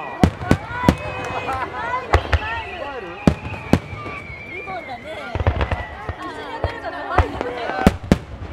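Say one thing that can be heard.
Firework shells whistle and screech as they shoot upward.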